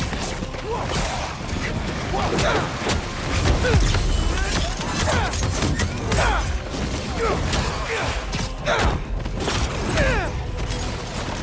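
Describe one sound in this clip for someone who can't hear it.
A mechanical creature screeches in short, sliding cries.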